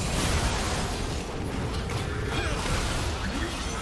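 A building explodes and crumbles in a video game.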